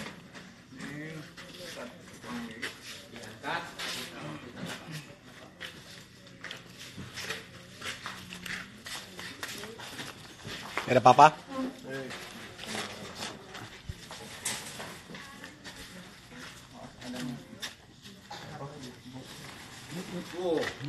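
A metal box clatters as a man lifts and shakes it.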